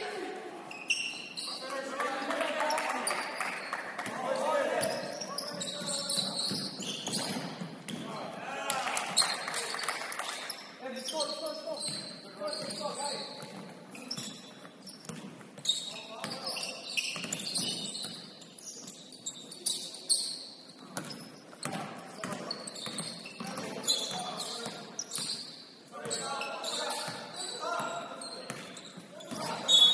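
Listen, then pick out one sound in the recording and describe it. Young players shout and call out in a large echoing gym.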